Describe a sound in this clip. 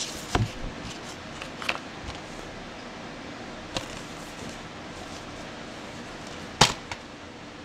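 A plastic case clicks and taps as it is handled.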